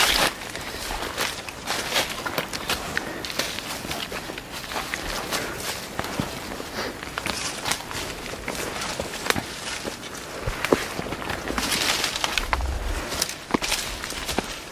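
Branches and leaves brush and snap as hikers push past.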